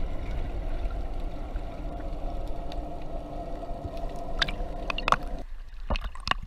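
Water rumbles dully, heard from beneath the surface.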